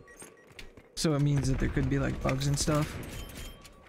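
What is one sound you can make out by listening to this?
A rifle fires a burst of shots.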